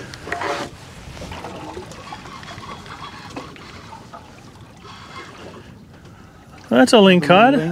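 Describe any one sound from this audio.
Wind blows over open water.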